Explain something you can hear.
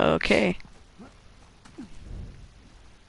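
A man grunts with effort while climbing.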